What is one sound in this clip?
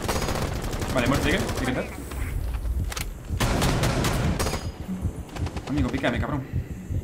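A young man talks with animation through a close microphone.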